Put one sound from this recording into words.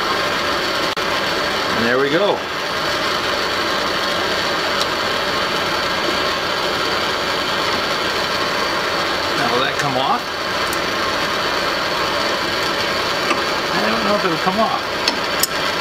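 Metal pliers click and scrape against a small metal part.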